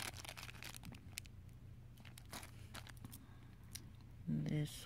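Plastic wrapping crinkles close by.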